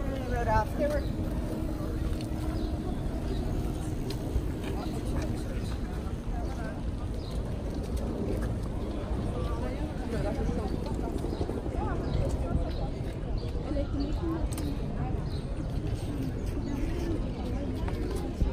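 A crowd of people chatters outdoors around the listener.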